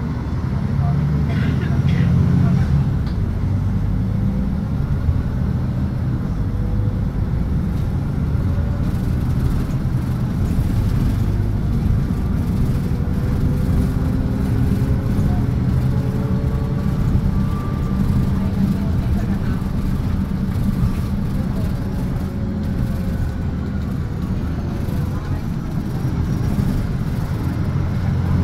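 A bus engine rumbles steadily, heard from inside.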